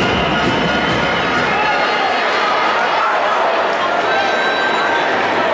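A crowd murmurs and chatters in a large echoing arena.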